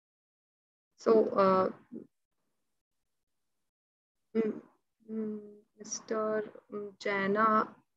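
A young woman speaks calmly in bursts through an online call.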